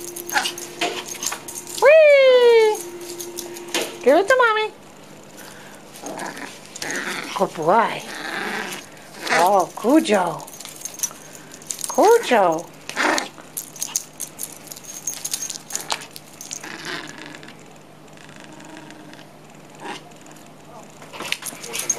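A small dog's paws patter and thump on carpet.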